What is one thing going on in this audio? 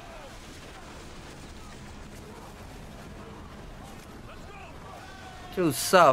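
Cannons boom and fire bursts on a ship.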